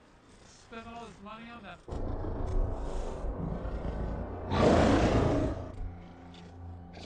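A creature growls and roars loudly.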